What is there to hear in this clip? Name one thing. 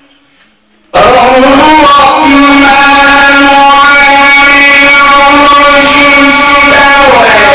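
A man chants in a long, melodic voice through a microphone.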